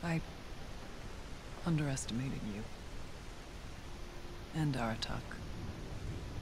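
A woman speaks calmly and slowly, close by.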